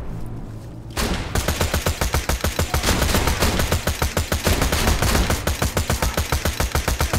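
A machine gun fires rapid, loud bursts.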